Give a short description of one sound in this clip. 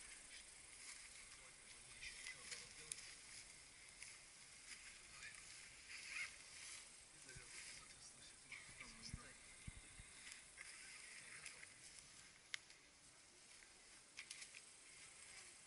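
A rope creaks and rubs against a tree trunk.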